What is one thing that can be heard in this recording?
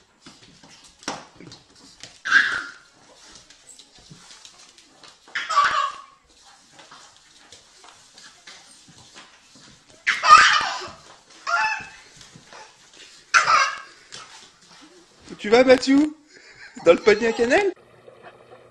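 A baby squeals and laughs loudly in short bursts.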